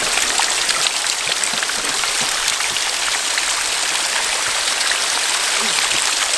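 Water trickles and drips steadily down a rock face close by.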